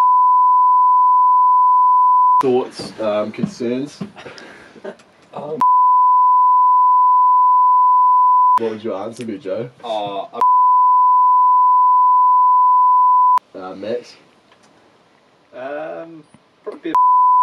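A steady high-pitched test tone beeps.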